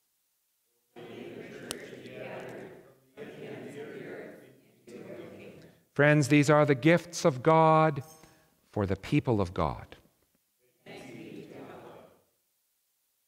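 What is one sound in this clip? A group of people speaks a response together in unison.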